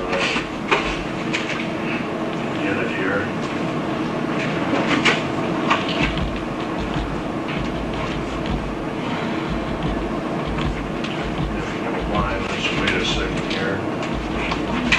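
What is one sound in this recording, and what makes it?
Objects clatter and knock inside a case.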